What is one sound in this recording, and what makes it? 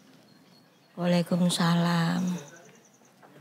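A middle-aged woman answers a greeting calmly.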